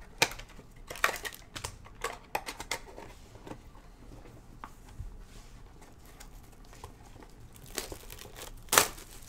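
Plastic wrapping crinkles and tears.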